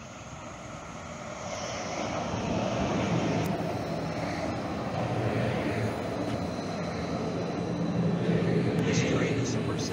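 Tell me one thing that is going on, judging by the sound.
A light rail train pulls in close by with a low hum.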